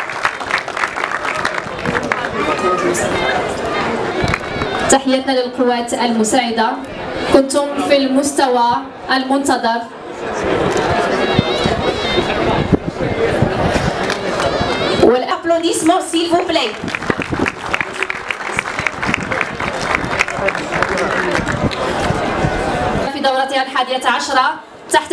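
A large crowd claps and cheers outdoors.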